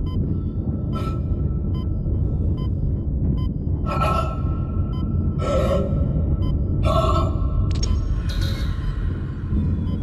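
A low mechanical rumble drones steadily.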